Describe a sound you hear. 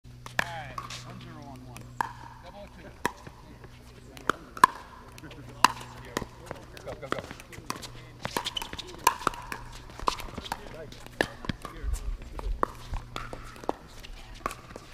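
Paddles strike a plastic ball with sharp hollow pops in a quick rally.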